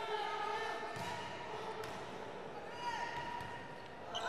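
A volleyball is struck with sharp thuds.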